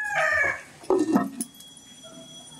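A clay lid clinks onto a clay pot.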